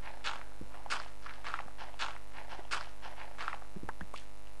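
A pickaxe digs into crunching gravel in quick, repeated strokes.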